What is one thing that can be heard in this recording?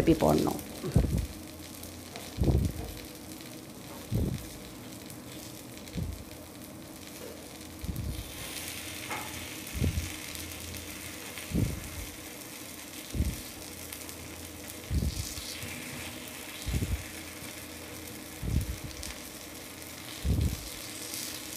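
A wooden stick knocks softly against a metal pan at a steady pace.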